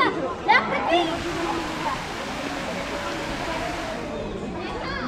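Water from a fountain splashes and hisses steadily.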